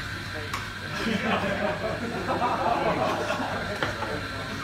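A group of young men laughs loudly in a room.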